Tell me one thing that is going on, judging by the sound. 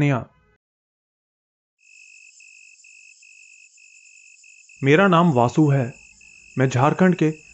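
A man narrates calmly into a microphone.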